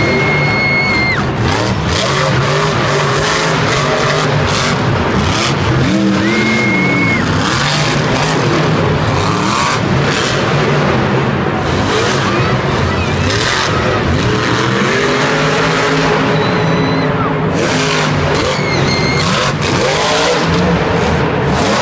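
A monster truck lands hard with a heavy thud.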